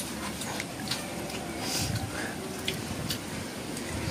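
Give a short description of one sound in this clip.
A woman chews and smacks her lips while eating up close.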